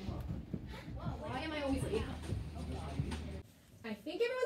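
Footsteps shuffle across a floor.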